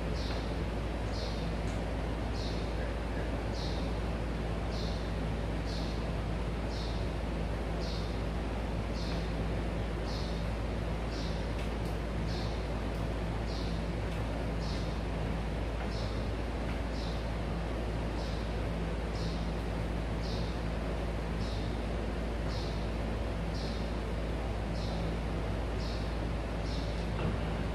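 A cloth wipes across a whiteboard with steady, rhythmic swishing strokes.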